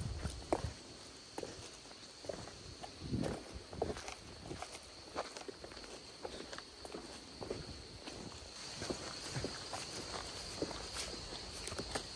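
Footsteps crunch on stone steps and leaf litter.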